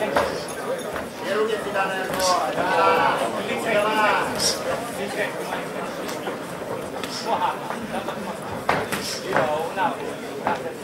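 A crowd murmurs and calls out in a large echoing hall.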